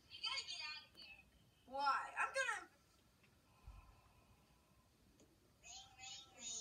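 A child talks with animation through a small loudspeaker.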